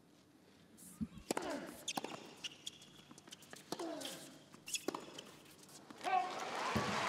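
A tennis ball is struck back and forth with rackets.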